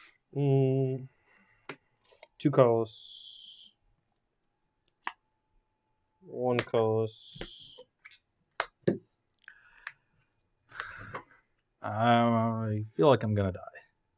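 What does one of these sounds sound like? Playing cards slide and tap on a table.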